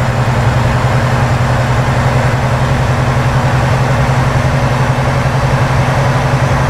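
Tyres roll on a paved road with a steady hiss.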